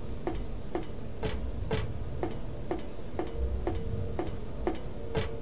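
Footsteps run across metal grating.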